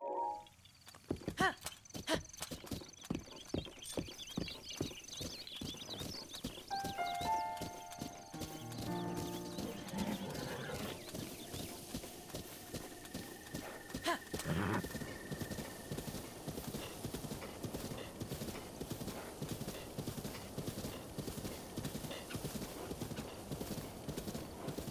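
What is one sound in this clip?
Horse hooves pound steadily over the ground at a gallop.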